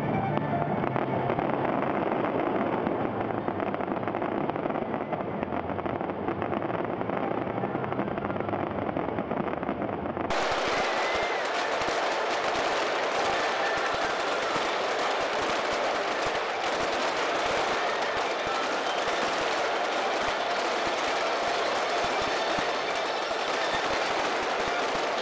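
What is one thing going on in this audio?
Fireworks crackle and fizz steadily.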